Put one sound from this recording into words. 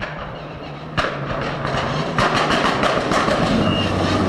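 A second rally car engine snarls close by with sharp crackling pops.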